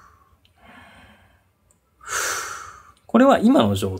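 A man breathes in and out slowly, close by.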